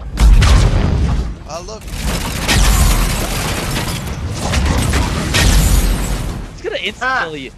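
Heavy gunfire and blasts roar loudly.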